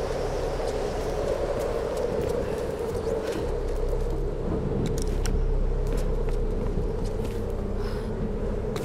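A torch flame crackles and roars steadily.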